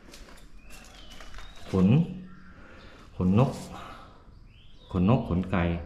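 Footsteps crunch on debris over a floor.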